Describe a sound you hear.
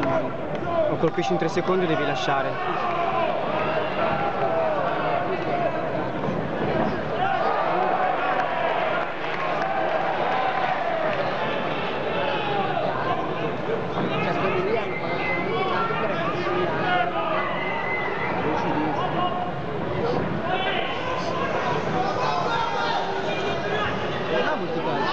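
A crowd shouts and cheers in a large arena.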